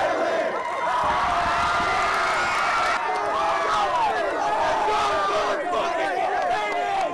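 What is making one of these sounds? A crowd of young men cheer and shout excitedly close by.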